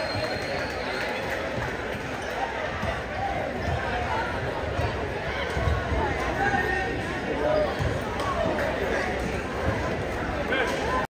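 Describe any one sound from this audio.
Players slap hands as they shake hands in a line.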